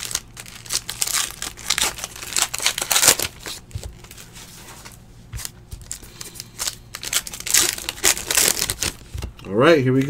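Trading cards rustle and flick as they are shuffled by hand close by.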